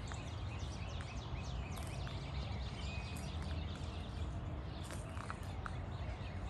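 Wind blows through tree branches and rustles the leaves.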